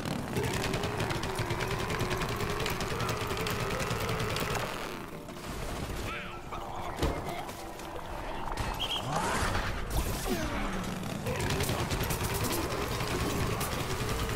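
A cannon fires footballs in rapid bursts.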